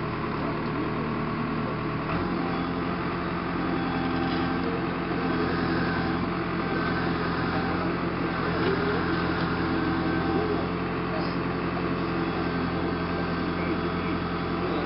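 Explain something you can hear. A backhoe's hydraulics whine as the bucket digs into soil.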